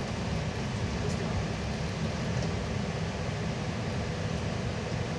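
Tyres hiss and crunch over a snowy road.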